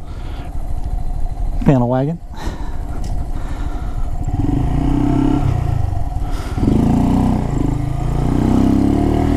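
A motorcycle engine rumbles and revs up through the gears.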